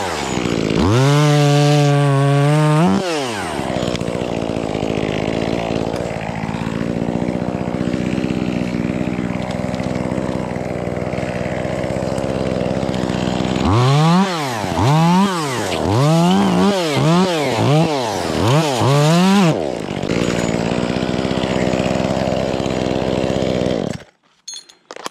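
A chainsaw engine idles loudly and close by, revving up in sharp bursts.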